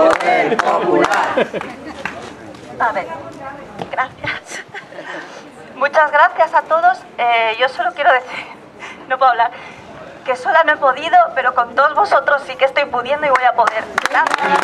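A woman speaks loudly through a megaphone outdoors.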